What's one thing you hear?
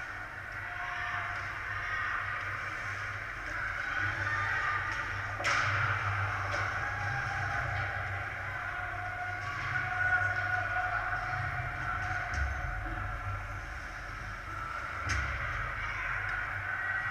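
Skate blades scrape and hiss across ice in a large echoing rink.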